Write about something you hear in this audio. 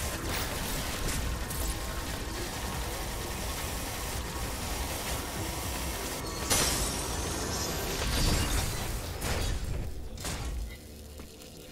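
An energy beam crackles and roars.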